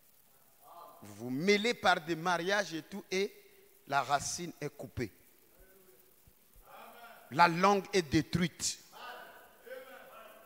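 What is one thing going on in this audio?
A man preaches with passion into a microphone, his voice heard through loudspeakers in an echoing hall.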